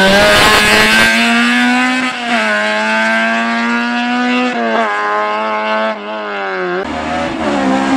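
A rally car engine revs hard and fades as the car speeds away.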